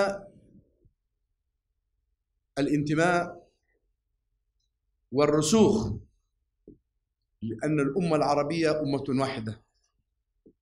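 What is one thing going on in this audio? A middle-aged man speaks calmly into microphones, in short phrases with pauses.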